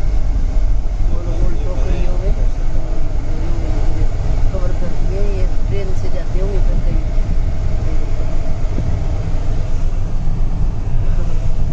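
A vehicle engine rumbles steadily from inside.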